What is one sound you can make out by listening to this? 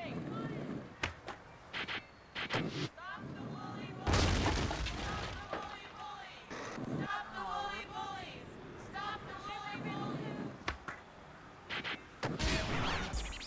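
Skateboard wheels knock hard on landing.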